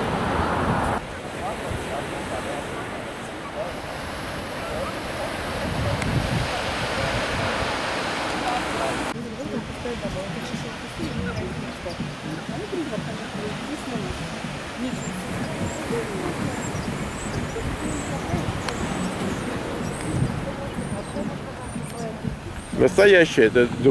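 Waves wash gently onto a shore in the distance.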